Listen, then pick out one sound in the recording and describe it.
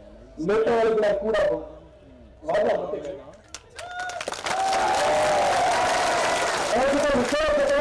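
A young man speaks forcefully into a microphone over loudspeakers.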